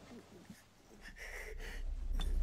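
A young woman groans softly in pain.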